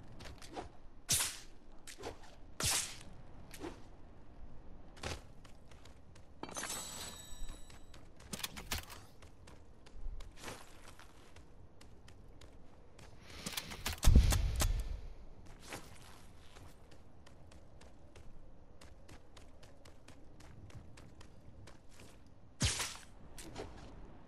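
Footsteps patter quickly across a rooftop.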